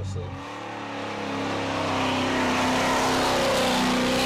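Tyres screech on wet tarmac.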